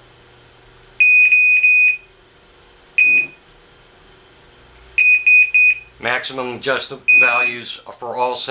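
An electronic detector beeps in short, shrill bursts.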